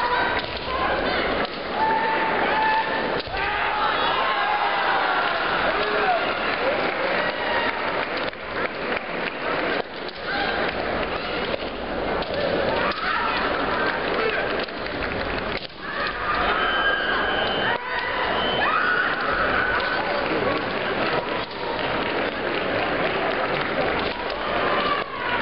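Fencers shout loudly in a large echoing hall.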